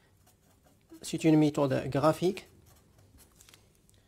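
A felt-tip pen scratches softly on paper.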